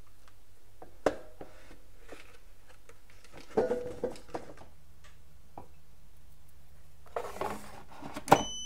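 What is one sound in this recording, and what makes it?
An air fryer basket clatters as it slides out and back in.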